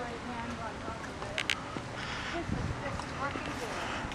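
A woman walks with light footsteps on pavement.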